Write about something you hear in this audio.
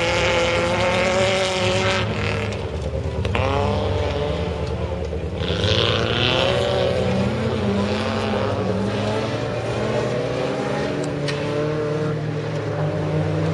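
A racing car engine roars loudly, revving up and down.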